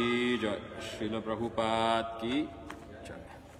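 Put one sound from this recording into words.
A middle-aged man chants in a clear, close voice.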